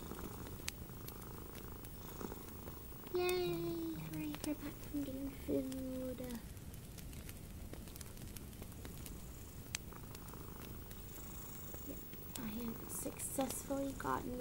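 Paper rustles softly between fingers.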